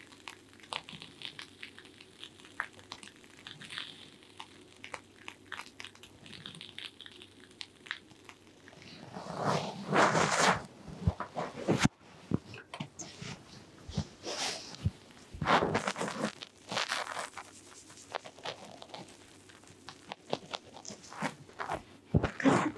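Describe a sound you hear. Fingers rub and rustle through hair close up.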